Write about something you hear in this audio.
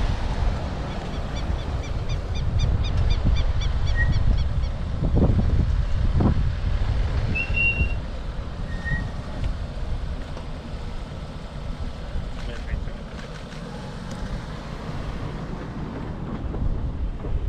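Wind blusters outdoors, rumbling against the microphone.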